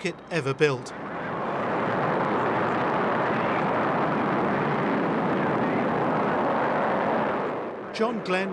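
A rocket engine roars steadily during a launch.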